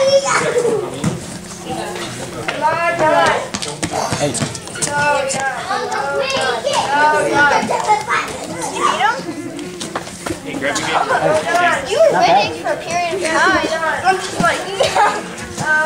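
Men shout loudly with animation in an echoing hall.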